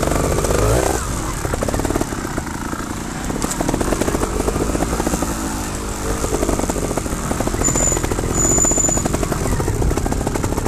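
A motorbike engine revs and roars up close.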